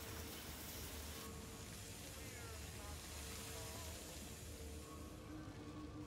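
Steam hisses from a pipe.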